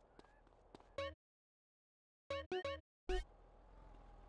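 Menu clicks beep briefly.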